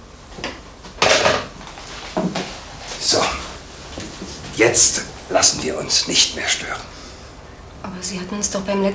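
A middle-aged man talks calmly.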